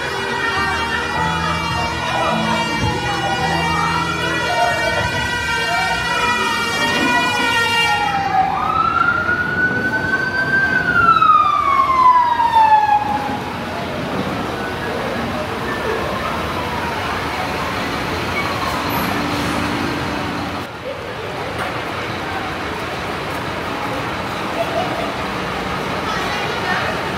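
A crowd of adults and children chatters nearby.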